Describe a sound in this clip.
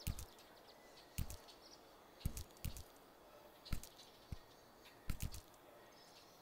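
Small footsteps patter in short bursts on stone.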